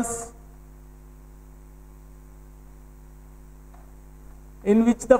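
A man speaks calmly, as if teaching, close by.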